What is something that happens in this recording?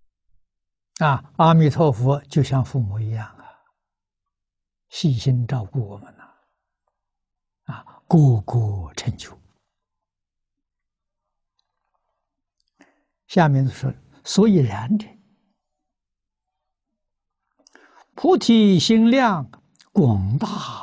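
An elderly man speaks calmly in short phrases with pauses, close to a microphone.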